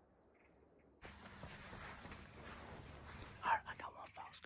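A young man speaks calmly and close.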